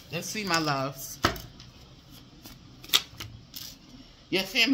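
Playing cards riffle and slap as they are shuffled.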